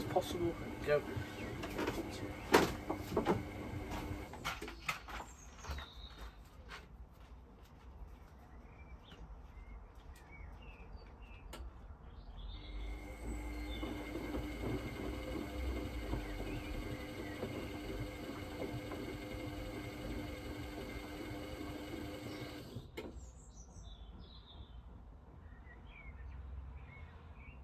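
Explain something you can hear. Water and suds slosh inside a washing machine drum.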